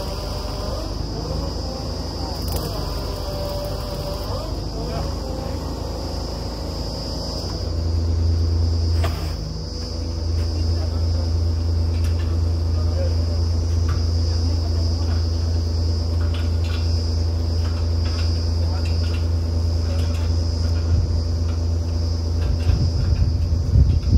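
A drilling rig engine runs with a steady low rumble, growing louder partway through.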